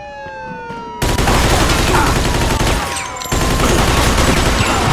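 A gun fires shots.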